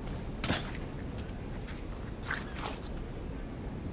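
Grass rustles as someone crouches through it.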